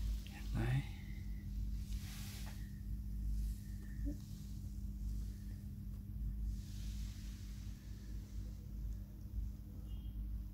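A cat purrs steadily up close.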